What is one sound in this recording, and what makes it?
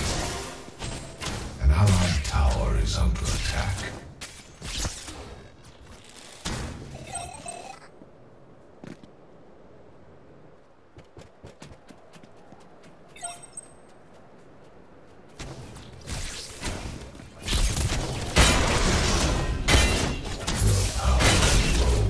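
Weapons fire and magic blasts crackle in loud bursts of combat.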